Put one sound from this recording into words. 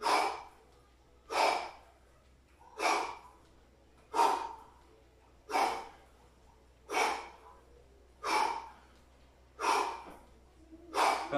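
A man exhales sharply with each squat.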